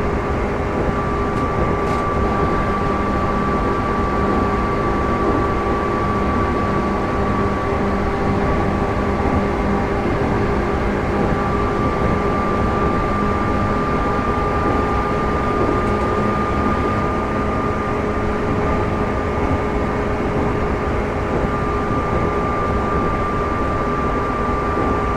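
Train wheels rumble and clatter over rails.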